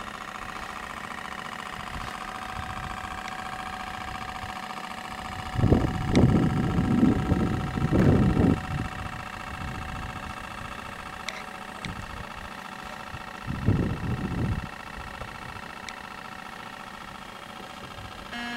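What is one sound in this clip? A small electric motor whines steadily on a model boat.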